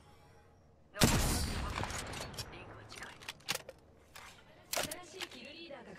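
Rifle shots crack in short, quick bursts.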